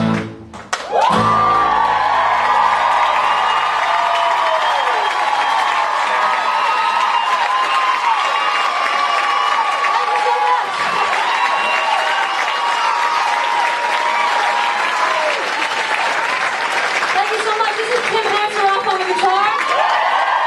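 A crowd claps loudly.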